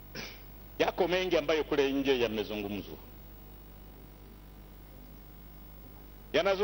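An elderly man speaks formally into a microphone, with pauses.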